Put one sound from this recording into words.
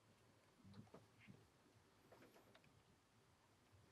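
A cat eats from a bowl with soft crunching.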